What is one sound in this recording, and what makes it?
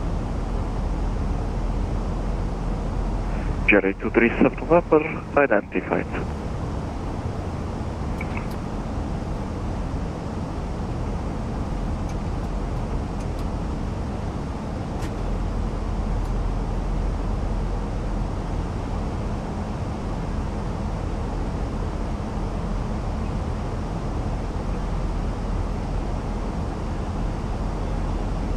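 Jet engines drone steadily.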